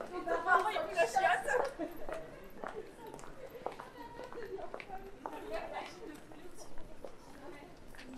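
Voices of passers-by chatter nearby outdoors.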